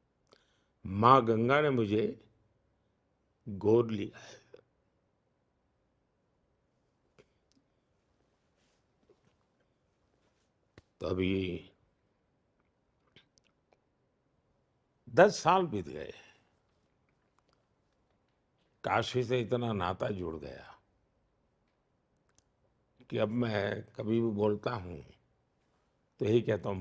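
An elderly man speaks calmly and thoughtfully into a close microphone, with long pauses.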